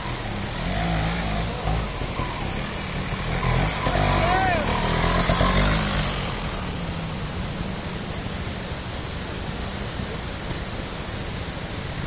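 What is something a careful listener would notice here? A mountain stream rushes loudly over rocks nearby.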